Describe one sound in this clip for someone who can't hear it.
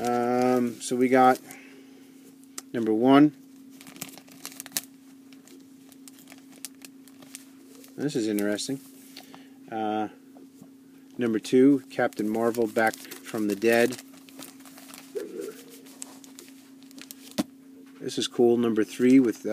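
Plastic comic book sleeves rustle as a hand flips through them.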